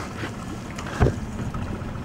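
Something knocks against a small boat's hull.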